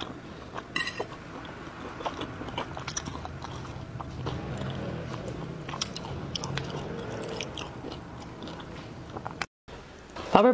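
A woman chews and slurps soft food close to a microphone.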